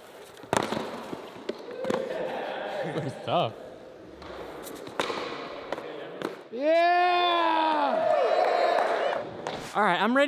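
Skateboard wheels roll and clack on a concrete floor in a large echoing hall.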